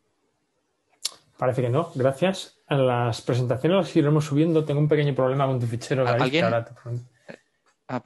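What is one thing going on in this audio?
A man talks with animation over an online call, close to his microphone.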